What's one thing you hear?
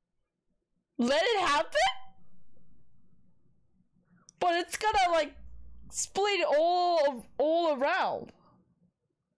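A young woman exclaims loudly and with animation close to a microphone.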